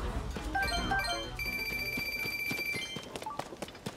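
A bright jingle of chiming notes plays.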